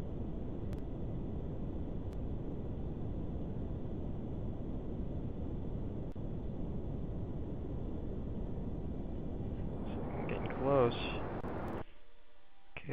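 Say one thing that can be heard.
A rocket engine roars steadily with a low rumble.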